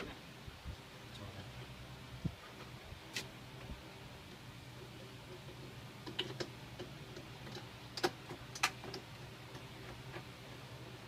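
A plastic bottle crinkles and clicks as it is handled.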